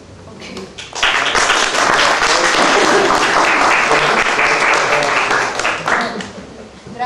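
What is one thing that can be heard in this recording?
A group of people laugh and clap loudly.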